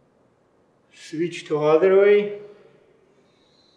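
A man speaks briefly and calmly through a microphone.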